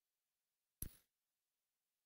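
A short menu click sounds.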